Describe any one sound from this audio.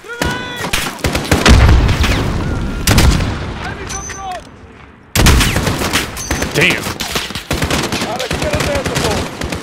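Gunfire crackles nearby in bursts.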